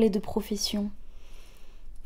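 A young woman speaks briskly and close by.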